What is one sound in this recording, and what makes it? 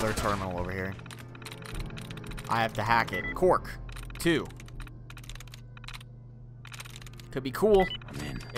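A computer terminal clicks and chirps as entries are picked.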